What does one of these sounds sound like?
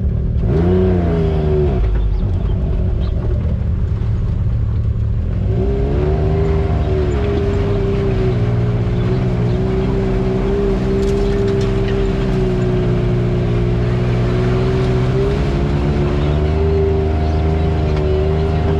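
Tyres crunch over rocks and dirt.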